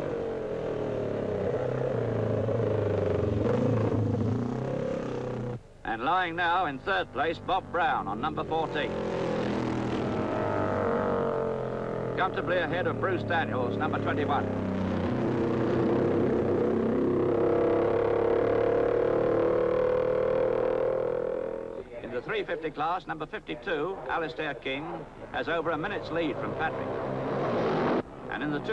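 Racing motorcycle engines roar past at high speed.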